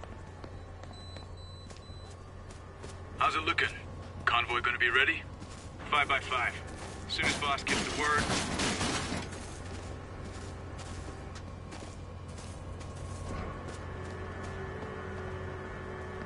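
Footsteps crunch softly on grass and gravel.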